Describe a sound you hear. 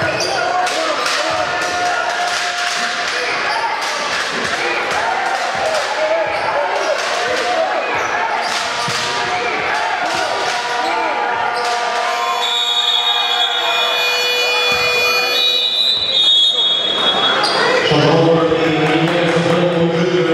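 A crowd murmurs and cheers in an echoing hall.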